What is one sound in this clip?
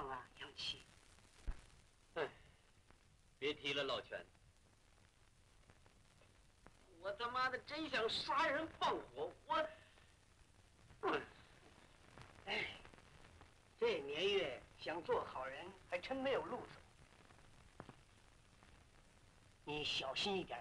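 An elderly man speaks.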